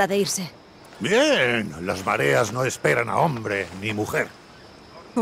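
An older man answers with a deep, lively voice, close by.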